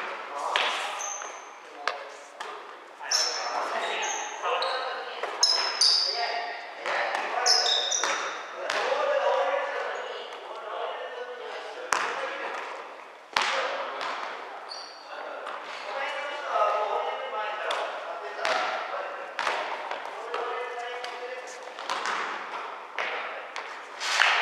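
Young men shout and call out to each other in an echoing hall.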